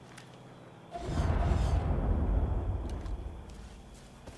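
A rifle fires a single loud shot that booms and echoes away.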